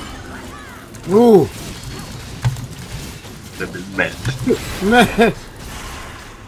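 A young man talks into a microphone close up, with animation.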